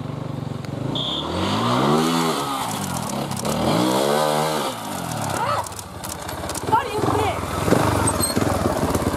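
A motorcycle engine revs hard, rising and falling in pitch.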